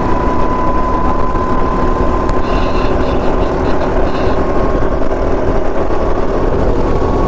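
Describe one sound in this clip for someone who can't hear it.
Wind rushes past at speed.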